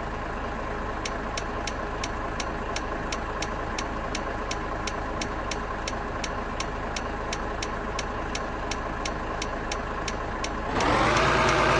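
A turn signal ticks rapidly and evenly.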